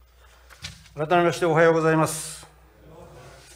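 A man speaks briefly and formally into a microphone.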